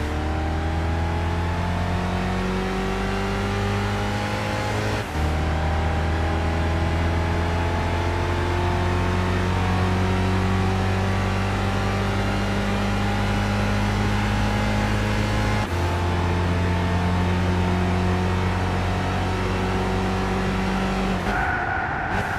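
A car engine roars as it accelerates hard, rising in pitch through gear changes.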